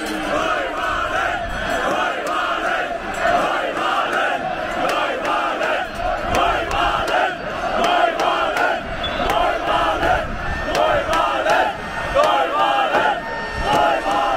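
A large crowd chants loudly together outdoors.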